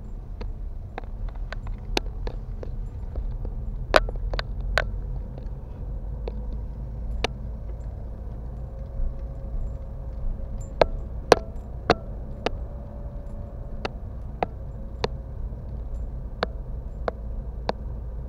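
A car engine hums low and steady from inside a slowly moving car.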